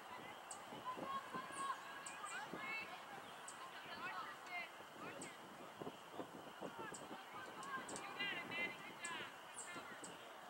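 Young women shout to each other across an open field in the distance.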